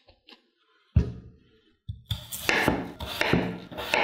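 A knife cuts through a raw potato onto a wooden board.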